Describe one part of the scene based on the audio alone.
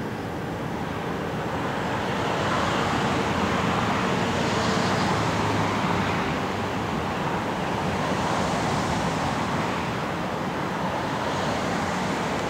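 A truck engine hums as the truck drives slowly away.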